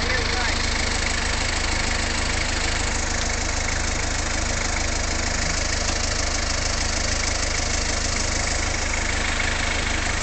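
A jet of water from a hose sprays and hisses steadily.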